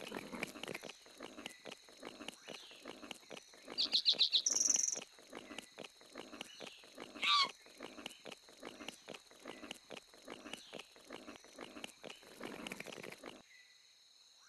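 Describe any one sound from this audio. Heavy animal footsteps thud rhythmically on the ground.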